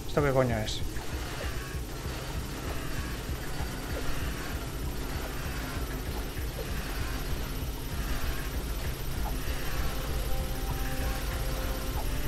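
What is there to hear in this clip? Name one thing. Turrets fire rapid streams of laser bolts.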